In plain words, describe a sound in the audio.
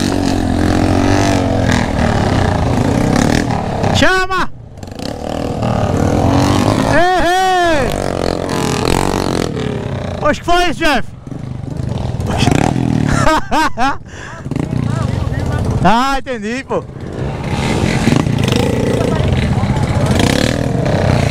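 Several small single-cylinder Honda trail motorcycles putter along in low gear.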